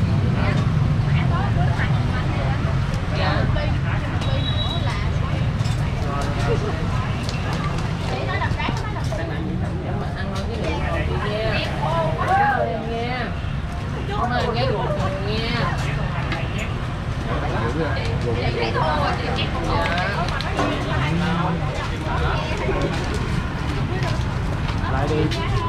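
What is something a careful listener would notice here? Metal utensils clink against pots and pans.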